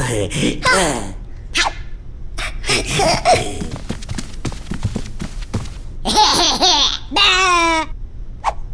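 A high, squeaky cartoon voice speaks with animation.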